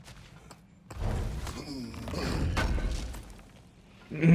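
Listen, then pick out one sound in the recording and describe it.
A heavy chest lid grinds open with a rumble.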